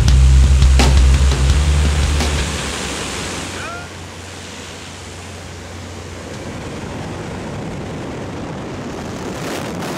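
Wind roars loudly past an open aircraft door.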